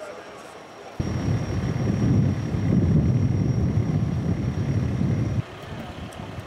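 A fire truck engine rumbles steadily.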